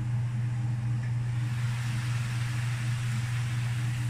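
A metal lid clanks as it is lifted off a pan.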